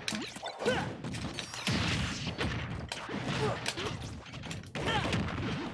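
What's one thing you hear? Punches and blasts thud and crack in quick bursts.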